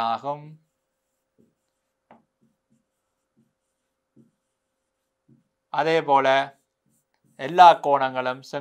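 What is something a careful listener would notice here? A man speaks calmly and clearly into a close microphone, in short bursts.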